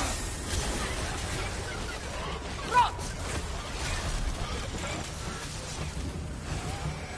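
Magical energy crackles and hums.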